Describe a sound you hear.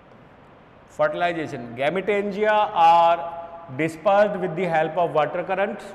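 A man lectures clearly into a close microphone.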